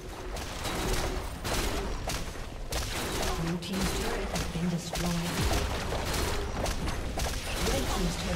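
Spell and hit sound effects from a video game clash and crackle.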